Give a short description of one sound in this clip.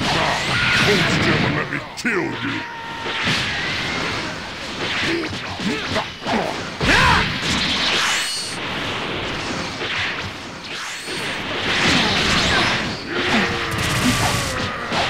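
Punches and kicks land with sharp impacts.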